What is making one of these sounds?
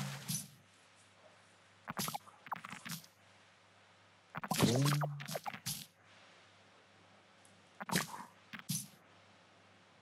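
A man speaks casually in short bursts, close to a microphone.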